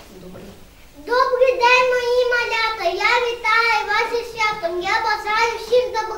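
A young girl sings in a high, clear voice.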